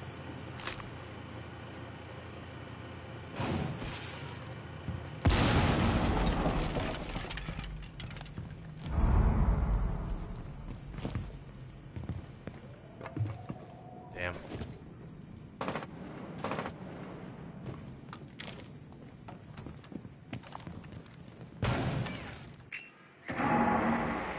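Gunfire bursts out loudly in short volleys.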